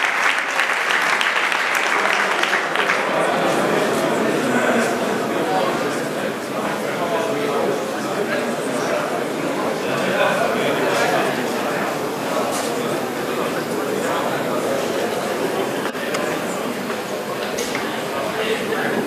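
A large indoor crowd chatters and murmurs loudly.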